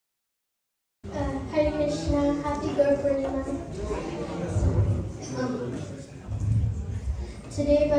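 A girl speaks calmly into a microphone through loudspeakers.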